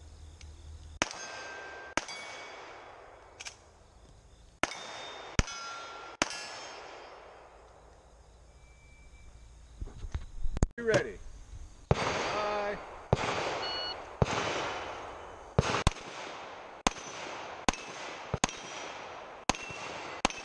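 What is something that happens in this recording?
Pistol shots crack outdoors, each echoing off the surroundings.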